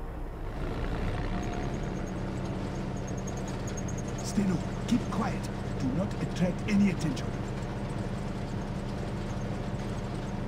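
A truck engine rumbles steadily while driving.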